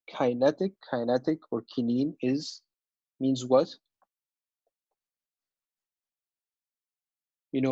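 A man lectures calmly, heard close through a microphone.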